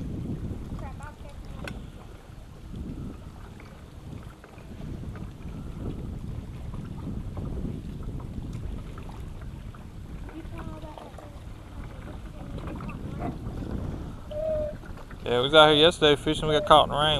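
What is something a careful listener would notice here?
Water laps gently against a boat hull.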